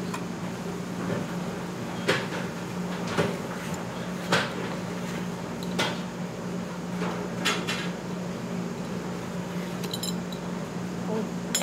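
A metal shaker clicks and taps as its lid is worked open.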